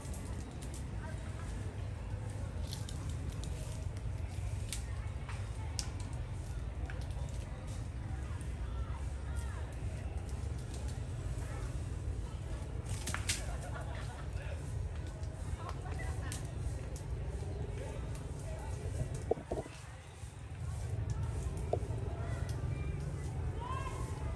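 Leaves and branches rustle and snap as a monkey climbs through a tree.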